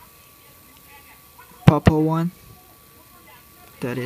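A small plastic connector clicks into place.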